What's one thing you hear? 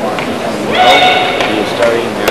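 A young woman shouts sharply and loudly.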